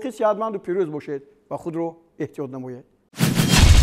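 A man speaks calmly and clearly into a microphone, as if presenting.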